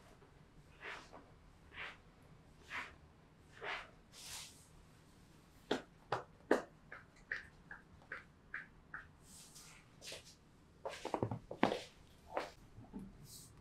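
Hands pat and slap rhythmically on a body.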